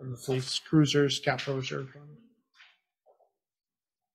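Paper rustles as a man handles papers.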